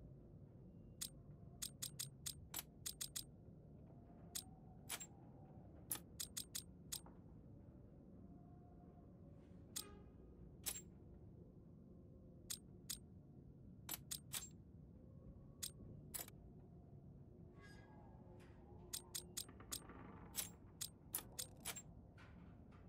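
Metal cylinders click sharply as they are turned one by one.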